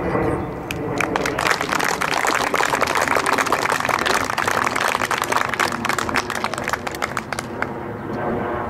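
A small crowd claps and applauds.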